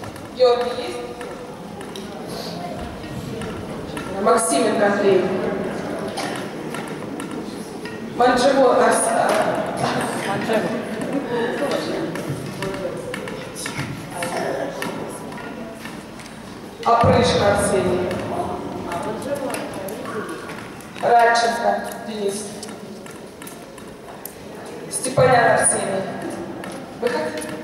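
Young children chatter quietly between the shouts.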